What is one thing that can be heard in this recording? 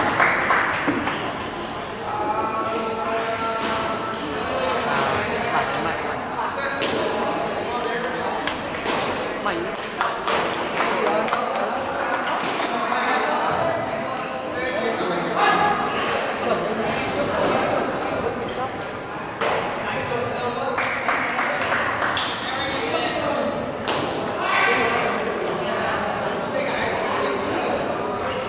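Many voices chatter in a large echoing hall.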